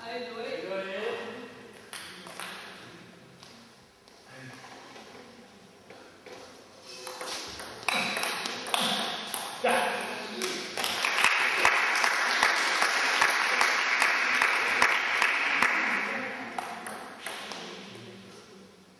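A ping pong ball clicks back and forth on a table and paddles in an echoing hall.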